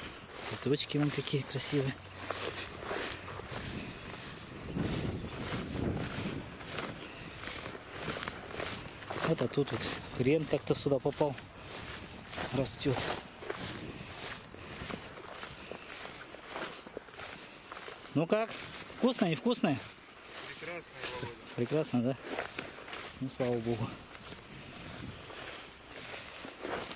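Tall grass swishes and rustles underfoot with steady footsteps.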